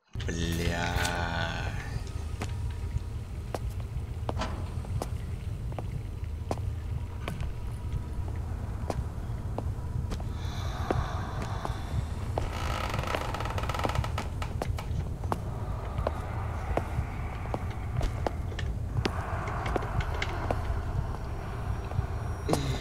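Footsteps tap slowly on a hard tiled floor.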